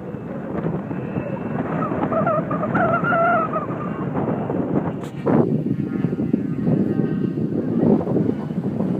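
Wind buffets the microphone outdoors in an open space.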